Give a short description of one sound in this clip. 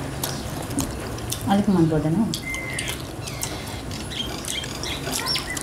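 Hands squelch as they mix food on metal plates.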